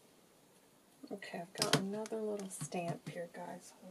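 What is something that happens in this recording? A plastic stamp block taps down onto paper.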